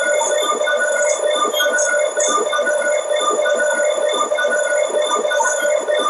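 A train rolls steadily along the rails with a rhythmic clatter.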